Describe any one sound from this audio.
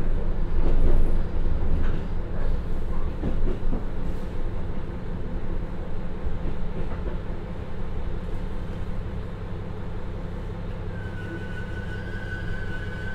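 A diesel railcar engine rumbles steadily as the train rolls along and slows down.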